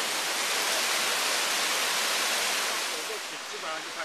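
Water rushes and splashes down a waterfall close by.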